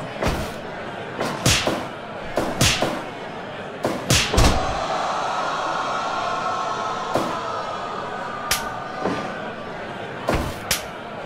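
Heavy blows and slams thud again and again.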